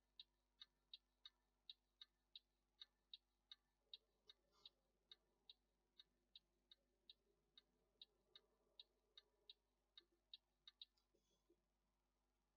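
A turn signal ticks in a fast, even rhythm, then stops.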